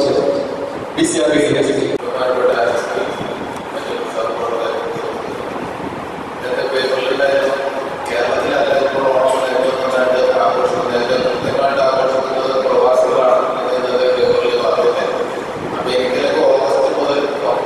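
A younger man speaks with animation into a microphone over a loudspeaker.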